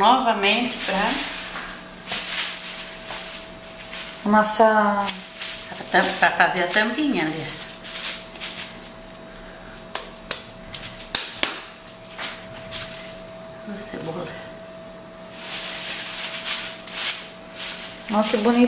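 A plastic sheet crinkles and rustles.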